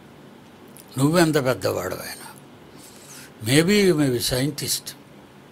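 An elderly man speaks slowly and calmly into a close microphone.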